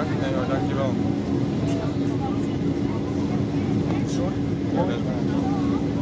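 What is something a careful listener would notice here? A jet engine roars steadily with a low hum inside the cabin.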